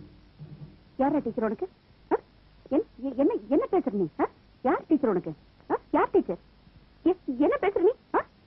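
A woman speaks tearfully and with emotion, close by.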